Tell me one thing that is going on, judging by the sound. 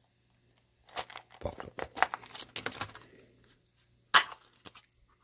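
A plastic ball creaks and pops open.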